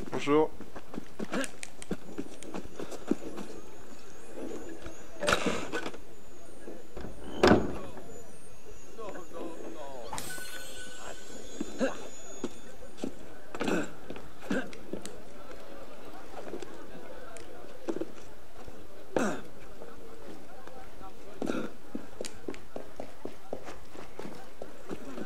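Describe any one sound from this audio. Footsteps thud on stone.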